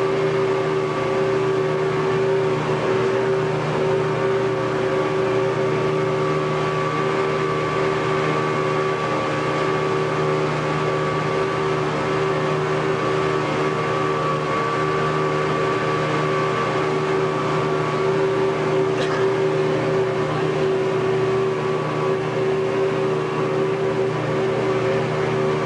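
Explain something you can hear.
Water rushes against a boat's hull.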